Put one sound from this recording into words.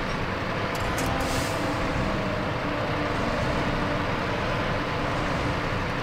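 A heavy truck engine rumbles steadily as it drives.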